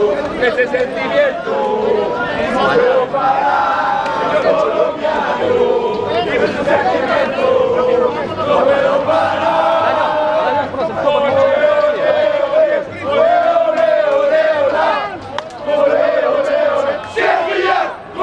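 A crowd of young men sings loudly and cheerfully outdoors.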